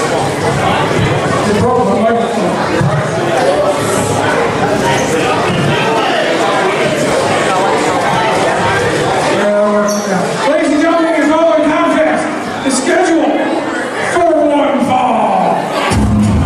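A man announces loudly through a microphone over loudspeakers in a large echoing hall.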